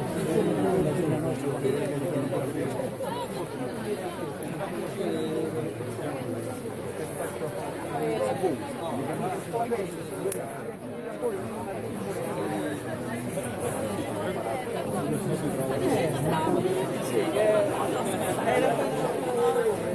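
A large crowd of men and women chatter all around outdoors.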